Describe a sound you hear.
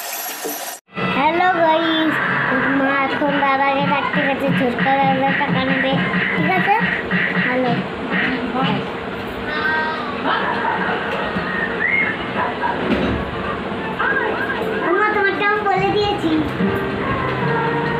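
A young boy talks close to the microphone.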